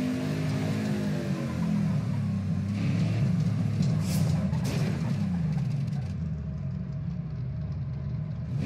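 A racing car engine roars loudly, its pitch dropping as the car slows.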